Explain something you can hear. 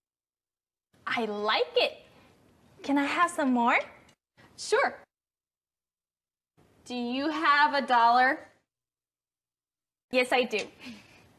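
A second young woman answers cheerfully.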